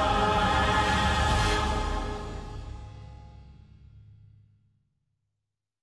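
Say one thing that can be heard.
A large choir of children sings loudly outdoors, then fades out.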